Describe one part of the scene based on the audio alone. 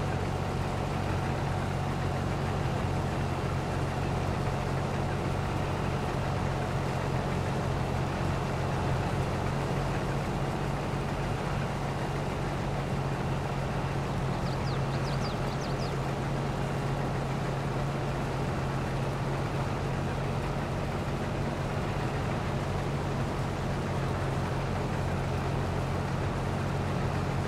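A combine harvester engine drones steadily.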